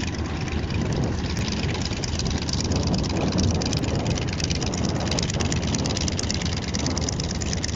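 A propeller plane's engine rumbles and drones loudly nearby as it taxis past.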